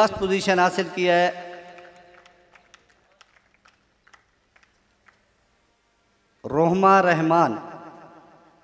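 A man speaks loudly into a microphone over a loudspeaker, with a long echo.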